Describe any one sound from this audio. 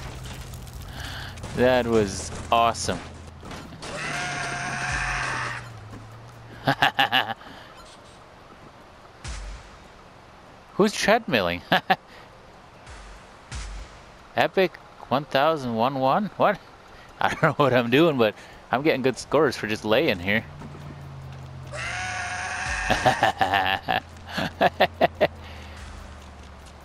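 A goat bleats.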